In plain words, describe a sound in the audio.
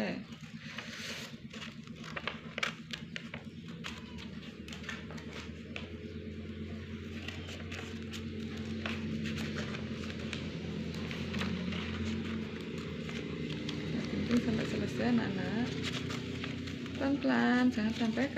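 Paper rustles and crinkles as it is handled.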